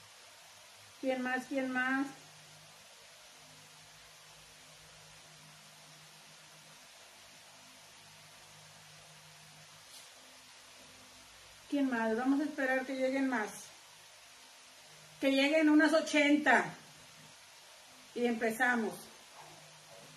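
A middle-aged woman speaks calmly and close by, in short bursts.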